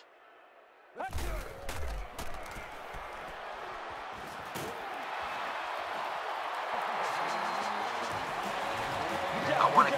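A stadium crowd roars and cheers, growing louder.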